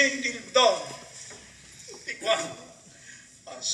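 An elderly man speaks loudly and with animation in an echoing hall.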